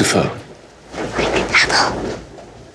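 A young girl gasps and exclaims with surprise.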